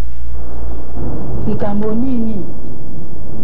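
A man speaks quietly, close by.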